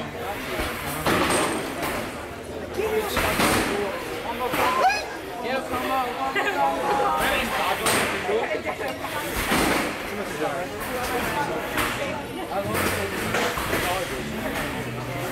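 Combat robots clang and bang against each other.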